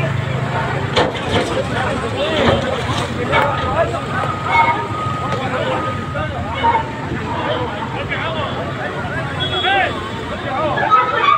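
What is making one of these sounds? Concrete cracks and crashes down as a loader's bucket smashes a wall.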